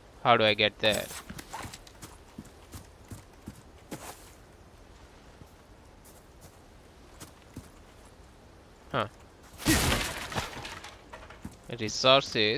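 Footsteps crunch on dirt and dry grass.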